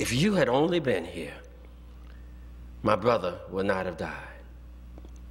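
An elderly man preaches with animation through a microphone.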